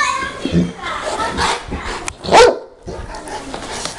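A dog growls playfully.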